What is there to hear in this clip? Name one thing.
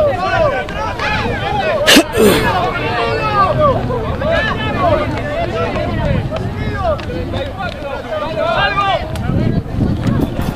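Young men shout and call to each other across an open field outdoors.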